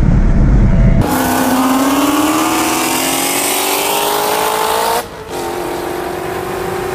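A supercharged V8 muscle car accelerates hard alongside, heard from a nearby car.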